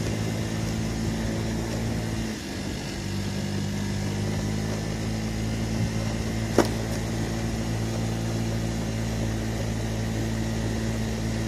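A scooter engine hums steadily at low speed.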